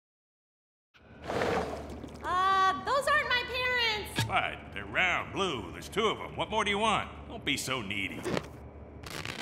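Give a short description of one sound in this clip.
A young voice speaks with animation, close to a microphone.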